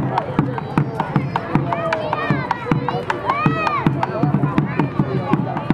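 A bass drum beats a steady, quick rhythm outdoors.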